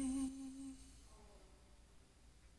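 A young man sings a held note close by.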